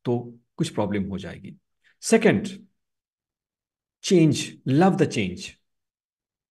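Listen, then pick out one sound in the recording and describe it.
A young man speaks calmly through a microphone in an online call.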